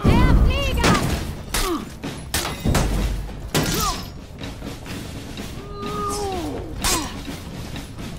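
Steel weapons clash and ring with sharp metallic clangs.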